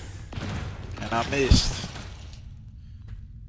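A burst of energy whooshes and booms.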